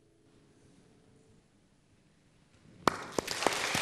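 A piano plays softly.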